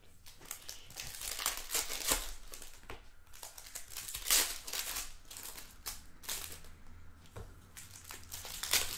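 A foil pack tears open with a sharp crinkling rip.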